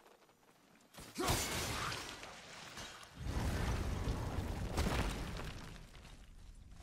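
A deep magical rumble swells and then fades.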